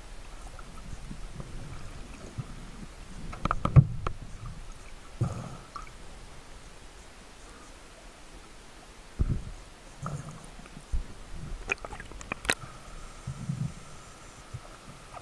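Underwater, a muffled rush of water surrounds the listener.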